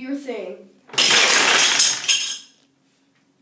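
Toy blocks crash and clatter onto a table.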